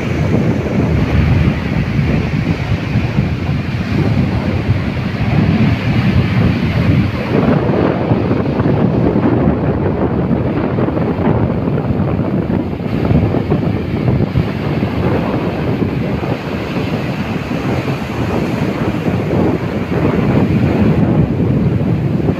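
Waves break and wash up onto the shore.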